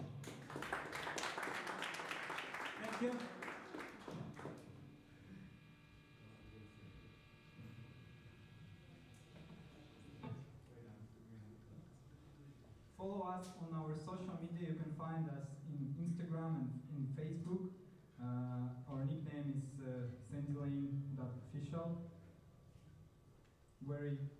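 Electric guitars play through loudspeakers.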